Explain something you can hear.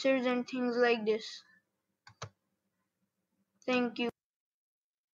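A boy speaks through a computer microphone in short bursts.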